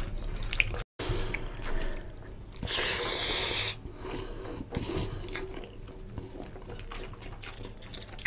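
A man chews and slurps food loudly close to a microphone.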